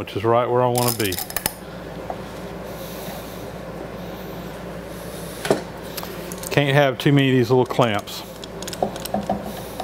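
Wooden clamps clack as a man handles them.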